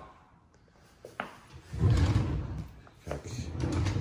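A cabinet drawer slides open.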